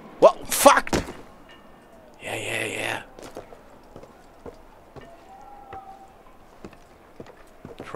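Footsteps thud softly on roof tiles.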